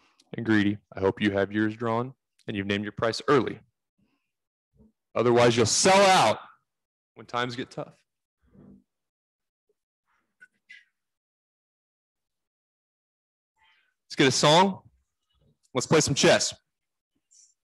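A man speaks with animation close into a microphone, in short bursts.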